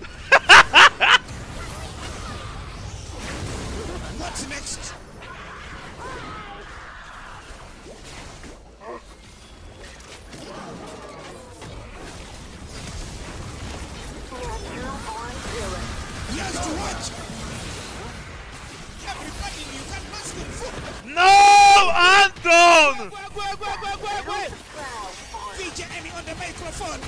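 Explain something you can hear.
Video game combat sounds of spells and hits ring out.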